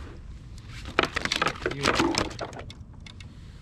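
Fishing gear rattles and clicks in a man's hands.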